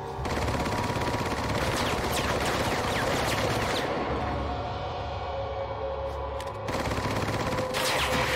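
A pistol fires shots.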